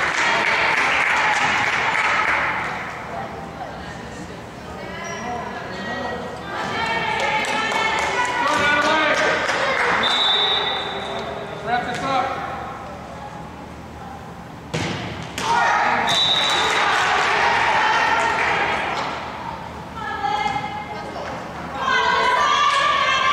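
A crowd of girls and spectators cheers and shouts in a large echoing gym.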